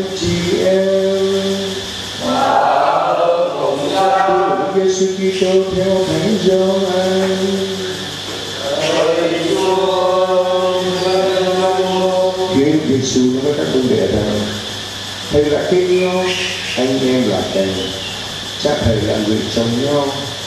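A congregation sings a hymn together in an echoing hall.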